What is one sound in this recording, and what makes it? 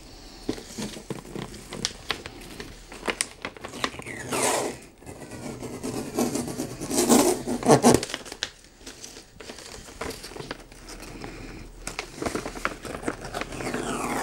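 Wrapping paper crinkles under hands.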